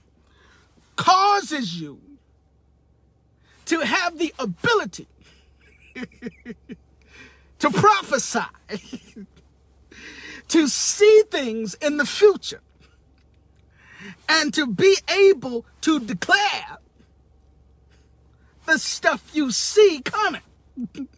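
A young man talks animatedly and close up, in bursts.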